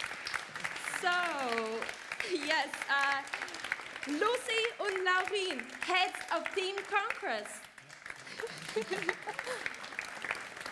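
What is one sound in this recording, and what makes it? A young woman speaks into a microphone in a lively, cheerful way.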